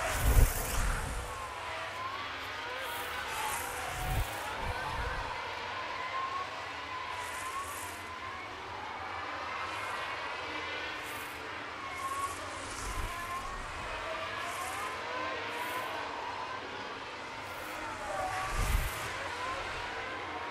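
Racing car engines whine and rise and fall in pitch as cars speed past.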